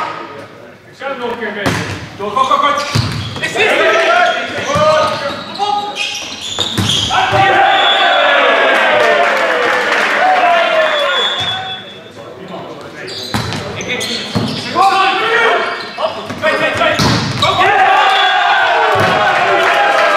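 A volleyball is struck hard with sharp smacks, echoing in a large hall.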